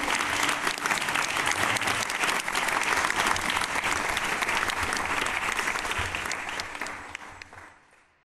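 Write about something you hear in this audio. A small audience claps and applauds, then the applause fades away.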